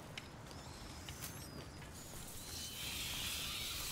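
A fire crackles in a brazier.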